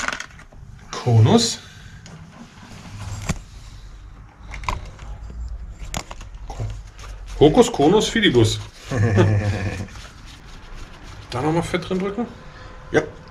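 A man speaks nearby in a casual voice.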